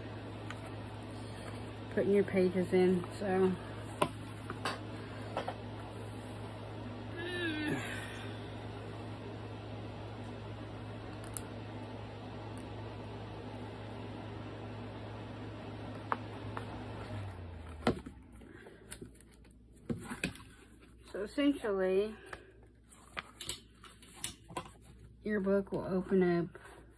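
Hands shuffle and tap a ring binder on a table.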